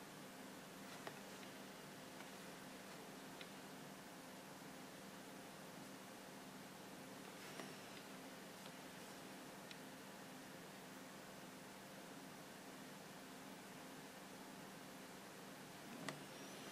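Small clicks and taps sound as fingers handle a tiny metal figure.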